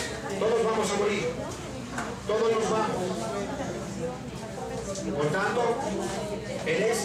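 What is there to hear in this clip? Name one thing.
A man speaks steadily through a microphone.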